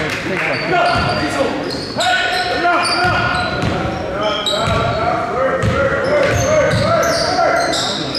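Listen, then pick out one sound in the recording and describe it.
A basketball thuds as it bounces on a wooden floor.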